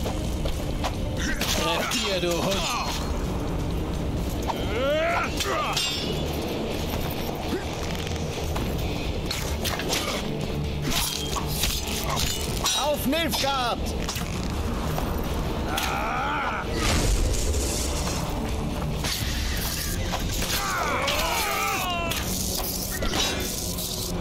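Swords clash and ring in a fight.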